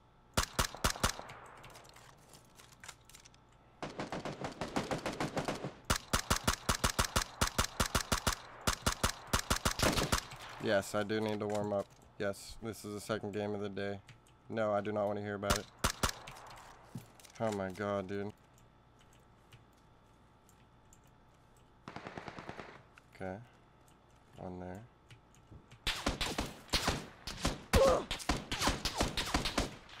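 Automatic rifle fire crackles in rapid bursts from a video game.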